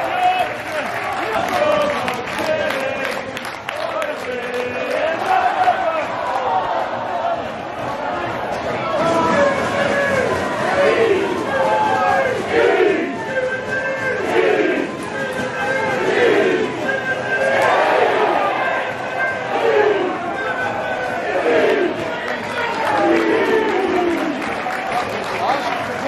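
A large crowd of fans sings and chants loudly in an open stadium.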